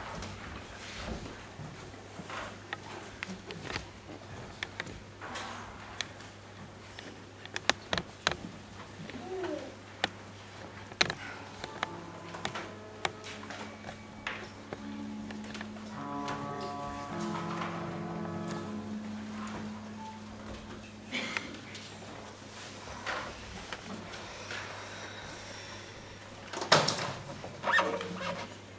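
Young people murmur quietly among themselves.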